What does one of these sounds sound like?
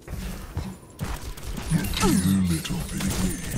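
A heavy chain rattles.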